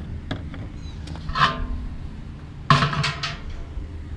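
A hand taps on a metal stand, making ringing knocks.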